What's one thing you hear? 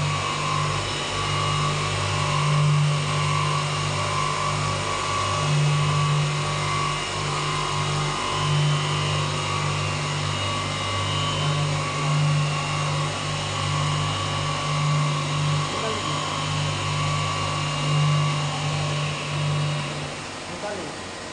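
A glass beveling machine's diamond wheel grinds a glass edge, humming, then winds down.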